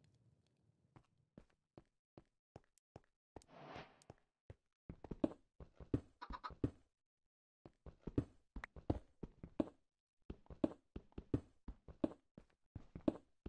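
A game pickaxe chips rapidly at stone blocks.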